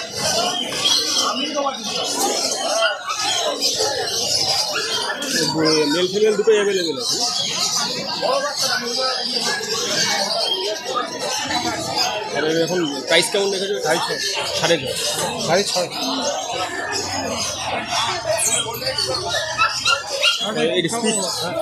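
Voices chatter in the background of a busy crowd.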